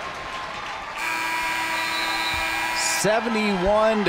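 A loud buzzer sounds steadily.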